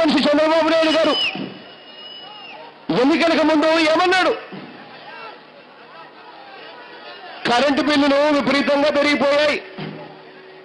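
A man shouts a speech loudly through a microphone and loudspeakers, outdoors.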